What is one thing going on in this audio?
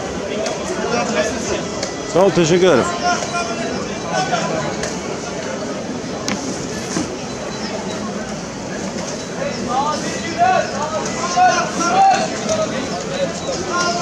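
A crowd of people chatters nearby in a busy outdoor street.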